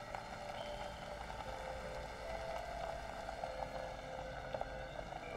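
A small vehicle's electric motor hums steadily as it drives.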